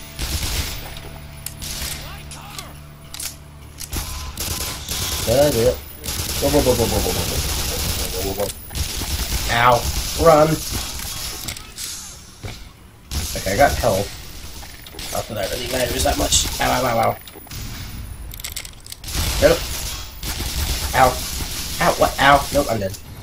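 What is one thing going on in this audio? A submachine gun fires bursts of shots.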